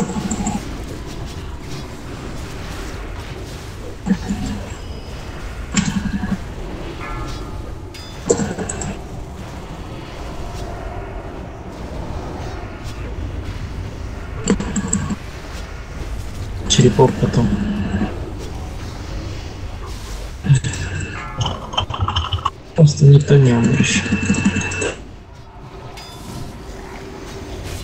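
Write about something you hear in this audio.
Magic spells burst and crackle in quick, repeated blasts.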